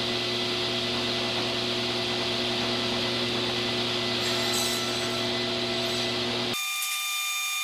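A table saw whines steadily as it cuts through wood.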